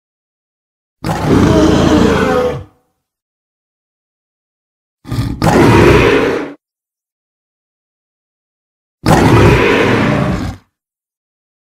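A gorilla roars loudly in three long bursts.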